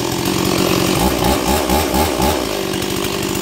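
A two-stroke chainsaw revs in short bursts.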